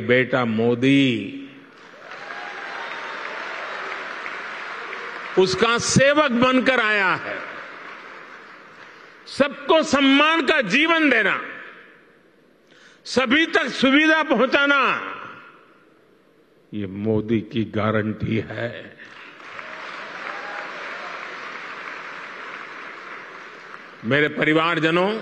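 An elderly man speaks with emphasis through a microphone in a large echoing hall.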